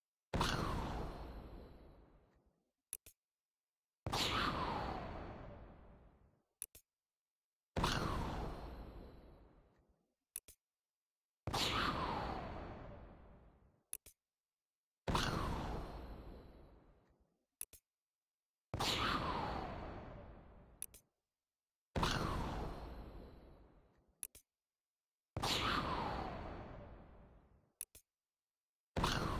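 A shimmering electronic whoosh bursts out and slowly fades, again and again.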